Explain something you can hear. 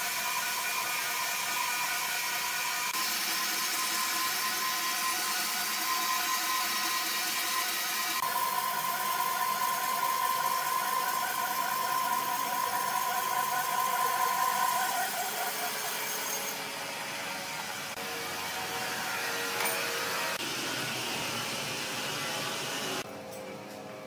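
A band saw whines steadily as it cuts through a thick log.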